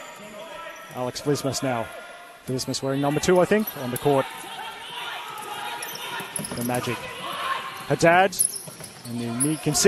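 Players shout to each other in a large echoing hall.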